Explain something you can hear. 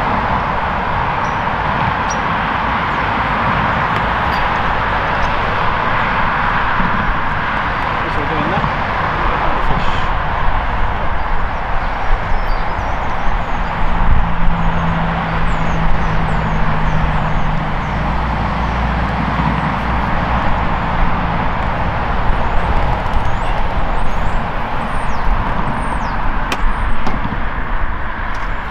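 Wind blows steadily across the microphone outdoors.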